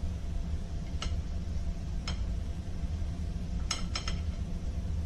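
A utensil clinks against a plate of food.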